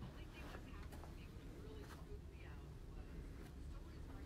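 A woman talks and laughs nearby.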